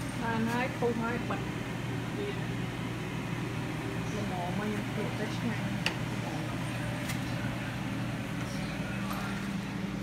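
A pot of thick soup bubbles and simmers.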